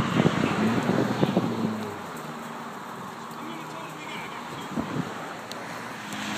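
Small flames crackle softly in burning grass.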